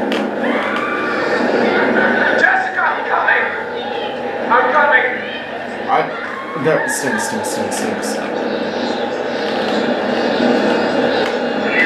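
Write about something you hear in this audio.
A young man talks excitedly, close to a microphone.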